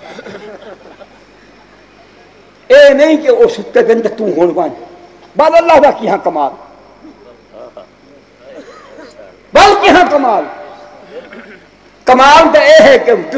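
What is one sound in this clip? An elderly man speaks with animation through a microphone and loudspeakers, in bursts with pauses.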